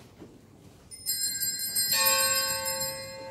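A small bell rings brightly.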